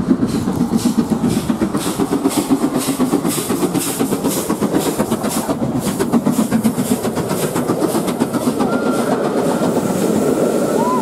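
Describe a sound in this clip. A steam locomotive chuffs loudly and rhythmically as it passes close by.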